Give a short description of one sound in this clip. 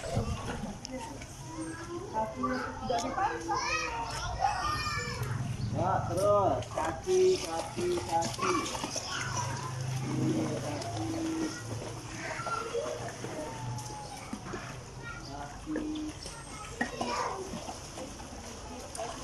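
A man talks calmly to a child nearby.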